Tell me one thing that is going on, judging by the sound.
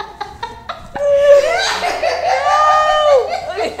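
A woman cries out loudly with excitement close by.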